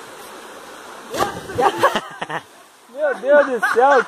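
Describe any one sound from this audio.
Water splashes as something plunges into a river.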